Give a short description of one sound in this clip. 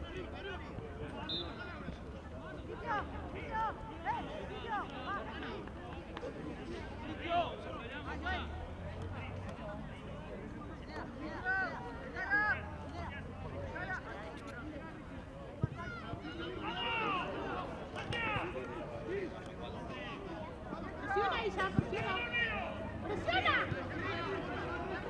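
Young players shout to each other across an open field, at a distance.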